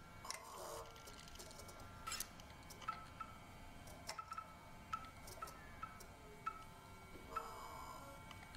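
A machine gives short electronic beeps as its selection changes.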